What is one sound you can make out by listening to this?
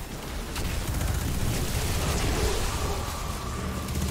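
Explosions rumble and burst.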